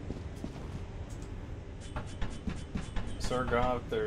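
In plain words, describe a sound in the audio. Hands and boots clank on a metal ladder rung by rung.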